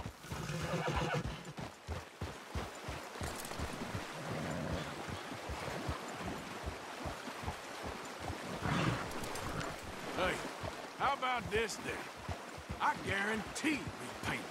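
A stream of water flows and burbles.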